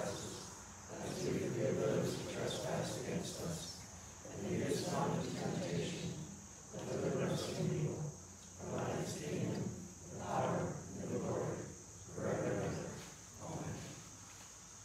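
An elderly woman speaks calmly and slowly, as if praying.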